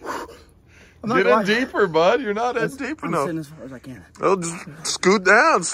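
A young man groans and cries out loudly in a high strained voice.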